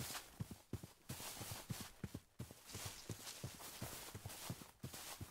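Footsteps thud steadily through grass.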